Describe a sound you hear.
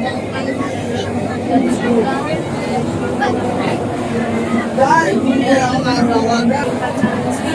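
A group of young people recite together in unison, in a room with a slight echo.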